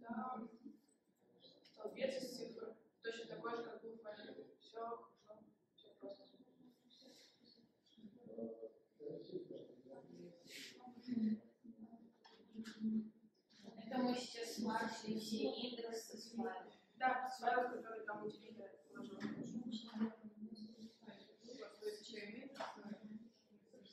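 A young woman speaks calmly to a group in a room with a slight echo.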